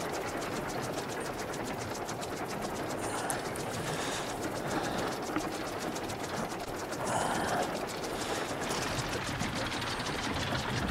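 A propeller whirs steadily overhead.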